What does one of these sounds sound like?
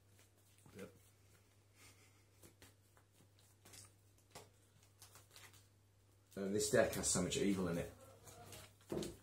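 Playing cards slide and tap softly on a tabletop.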